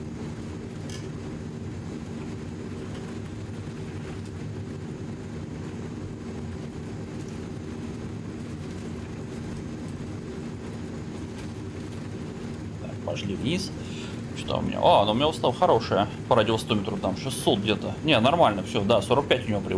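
Aircraft engines drone steadily with a low hum.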